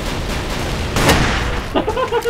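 A sniper rifle fires a single loud shot.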